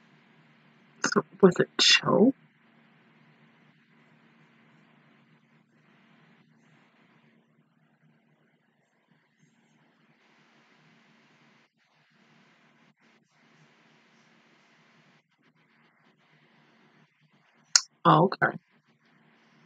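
A young woman gasps and squeals loudly close by, her voice muffled by her hands.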